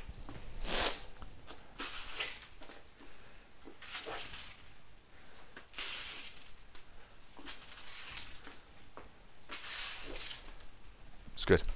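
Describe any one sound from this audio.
A broom brushes a ball across a hard floor.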